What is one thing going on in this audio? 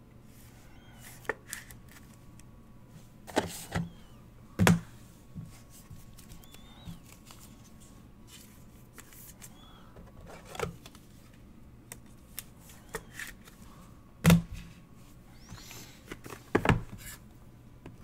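Trading cards are shuffled and tapped together by hand.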